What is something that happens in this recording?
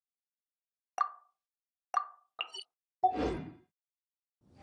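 Menu chimes blip a few times.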